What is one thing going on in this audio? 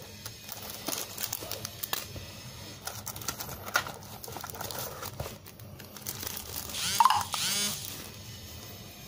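Plastic wrapping crinkles and rustles between fingers.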